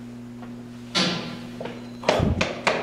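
Footsteps thud on stairs close by.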